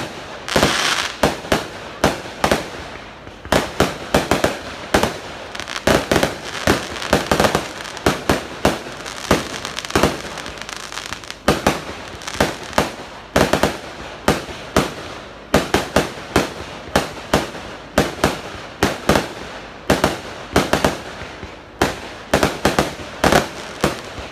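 Fireworks burst with loud bangs again and again.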